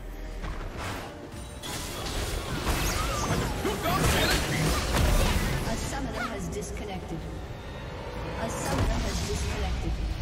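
Game spell effects crackle and whoosh in a busy fight.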